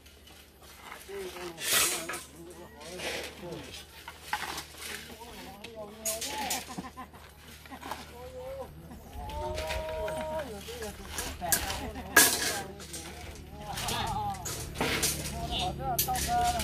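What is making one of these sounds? A hoe scrapes and chops into dry, gritty soil.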